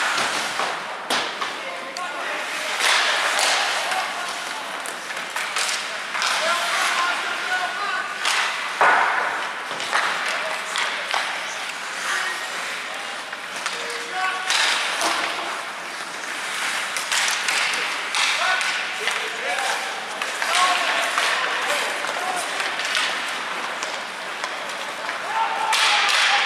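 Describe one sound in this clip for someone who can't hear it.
Players shout to one another across an echoing rink.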